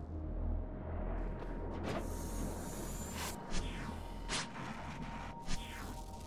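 A game launch pad whooshes as a character is flung into the air.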